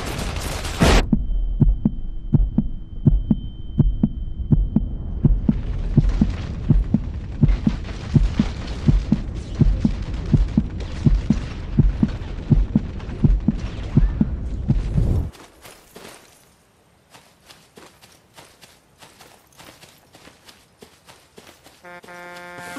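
Footsteps run over ground.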